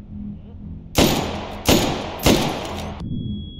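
A rifle fires several loud shots that echo off hard walls.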